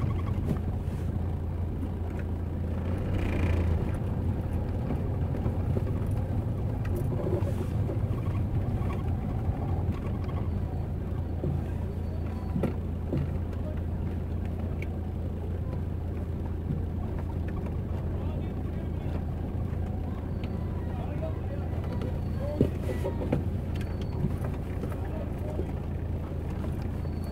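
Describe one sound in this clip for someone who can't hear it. A crowd of people murmurs and chatters nearby, outdoors.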